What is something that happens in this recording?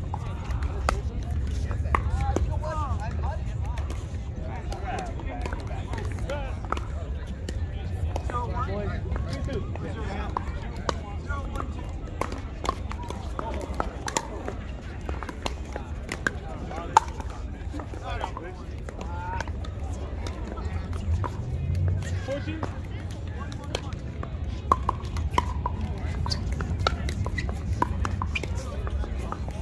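Pickleball paddles pop against a plastic ball outdoors.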